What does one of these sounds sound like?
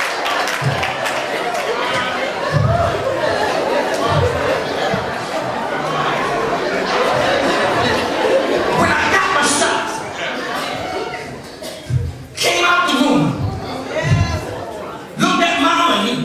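A man preaches with passion into a microphone in a reverberant hall.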